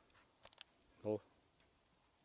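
A small dog barks nearby.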